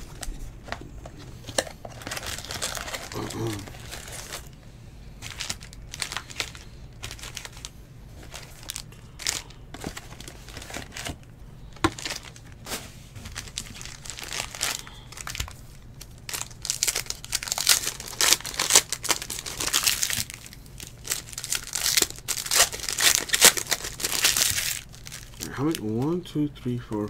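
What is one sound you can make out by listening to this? Plastic wrappers crinkle and rustle as they are handled.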